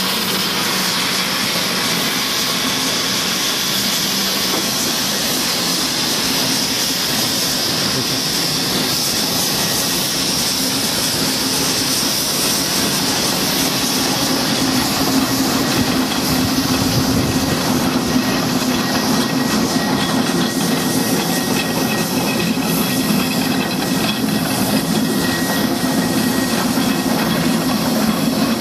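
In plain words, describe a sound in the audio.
A heavy lorry engine rumbles steadily close by.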